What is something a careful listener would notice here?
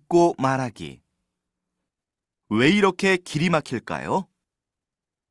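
A young man speaks calmly and close to a microphone.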